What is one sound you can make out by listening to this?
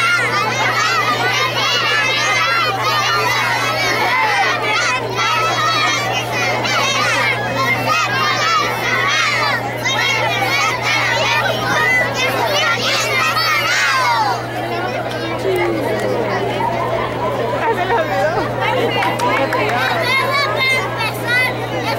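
A group of young children sing together loudly outdoors.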